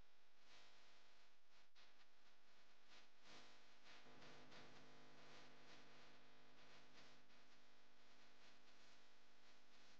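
A marker squeaks and scratches across a canvas.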